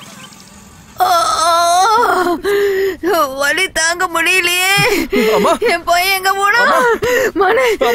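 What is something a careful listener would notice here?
A woman wails loudly in distress.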